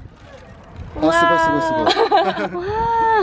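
A young woman laughs excitedly.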